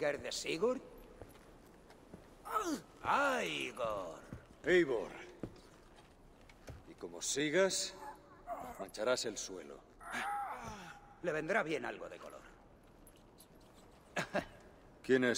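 A man speaks gruffly and mockingly, close by.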